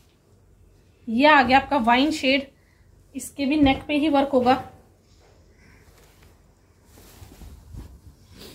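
Cloth rustles softly as it is handled.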